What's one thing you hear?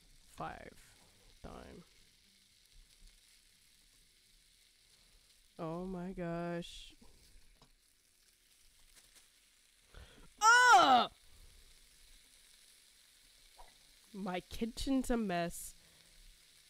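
Fish sizzles softly in a frying pan.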